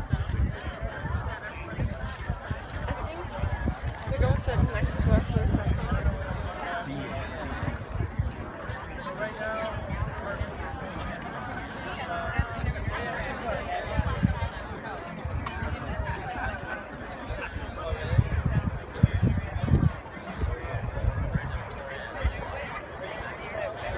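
A crowd of men and women chatters outdoors nearby.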